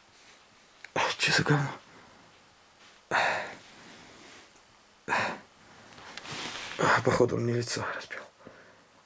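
A man speaks in a low, hushed voice close by.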